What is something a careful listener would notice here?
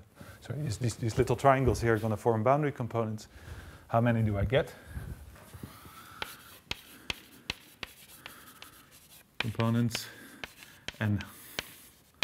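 A man speaks calmly, pausing between phrases.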